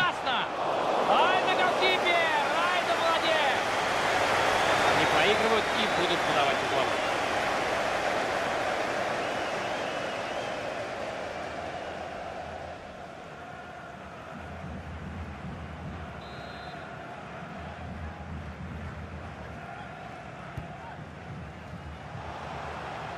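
A large stadium crowd cheers and roars loudly, then settles into a steady murmur.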